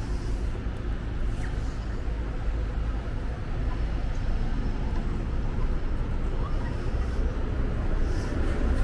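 City traffic rumbles steadily nearby.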